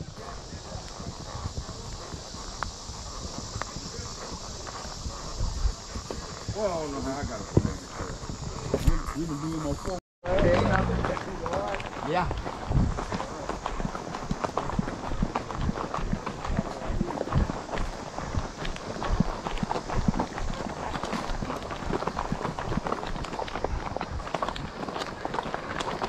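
A horse's hooves thud and crunch steadily on a trail.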